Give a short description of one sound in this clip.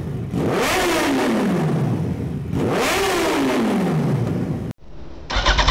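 A motorcycle engine revs sharply twice through a loud exhaust, each time winding back down.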